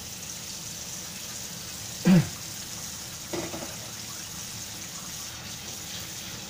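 Water runs from a tap and splashes into a metal pot.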